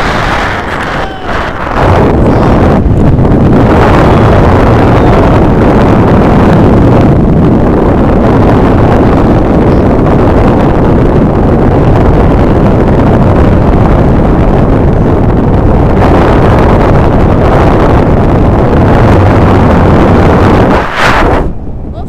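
Strong wind roars loudly past a microphone in open air.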